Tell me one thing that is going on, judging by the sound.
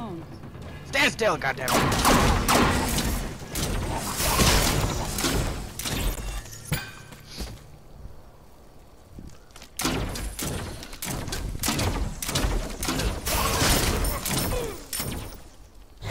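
Magic blasts crackle and burst in a video game fight.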